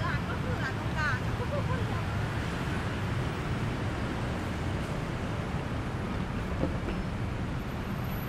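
City traffic rumbles steadily nearby outdoors.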